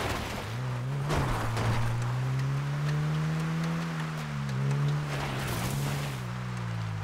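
A car engine hums steadily and rises and falls in pitch as it drives.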